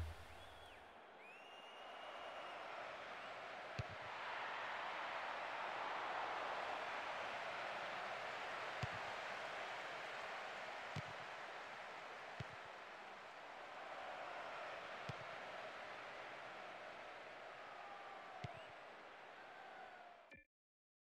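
A large crowd cheers and murmurs steadily, as in a stadium.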